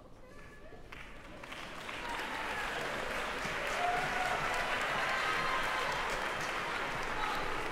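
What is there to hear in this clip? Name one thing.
An audience applauds as performers walk on.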